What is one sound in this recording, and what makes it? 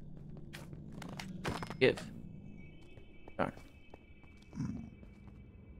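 Blocks crumble and break with a short crunch.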